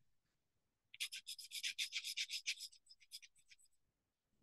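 A paintbrush scrubs lightly on paper.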